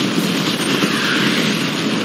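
An explosion blasts and scatters debris.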